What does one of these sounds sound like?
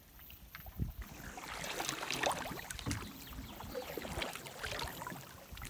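A paddle splashes and drips in calm water.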